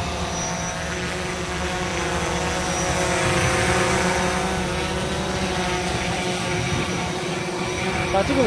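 A drone hovers close by with a steady high buzzing whine.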